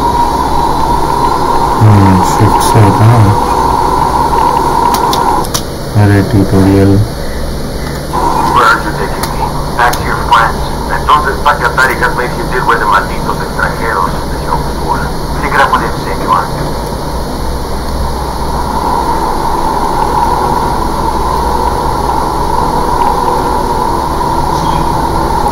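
A helicopter's rotor thumps and its engine whines steadily.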